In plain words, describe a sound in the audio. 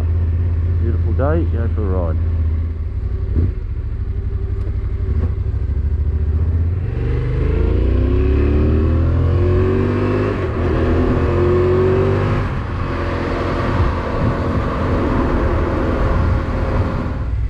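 A vehicle engine hums steadily and then revs up as it picks up speed.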